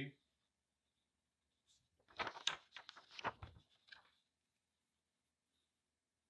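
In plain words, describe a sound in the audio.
Paper rustles as it is peeled off a surface.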